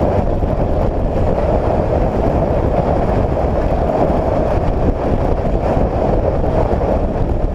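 A vehicle rumbles steadily along a gravel road.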